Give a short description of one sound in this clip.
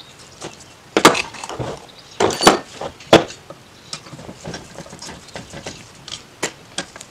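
A metal carburetor knocks and clatters on a table.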